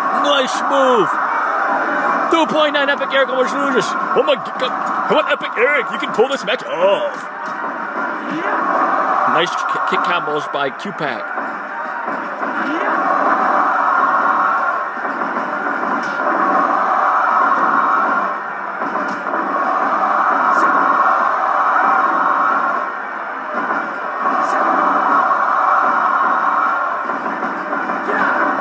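A crowd cheers and roars from a television, swelling and dipping.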